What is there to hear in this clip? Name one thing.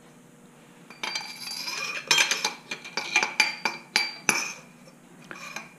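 A metal tube slides against another tube with a scraping sound.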